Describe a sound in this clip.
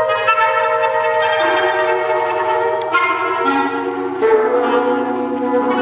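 A flute plays a flowing melody.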